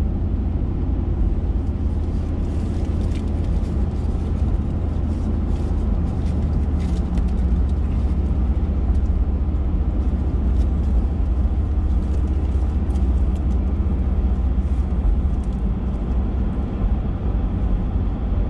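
A car engine hums steadily with a low road rumble from inside the car.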